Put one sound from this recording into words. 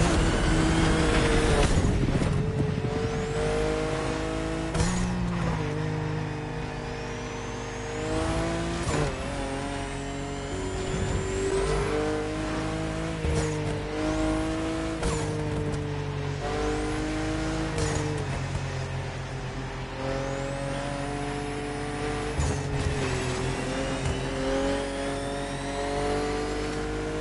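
A sports car engine roars at high speed, climbing in pitch and dropping sharply with each gear change.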